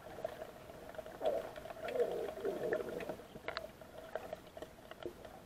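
Water bubbles and swirls close by underwater.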